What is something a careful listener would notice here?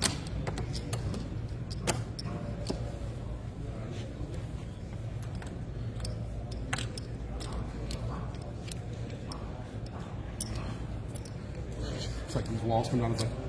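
Plastic game pieces click and tap on a tabletop.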